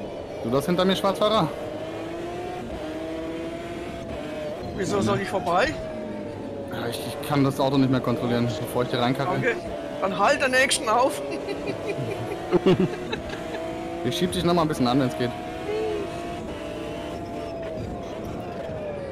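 A racing car engine drones steadily, its pitch rising and falling with the gear changes.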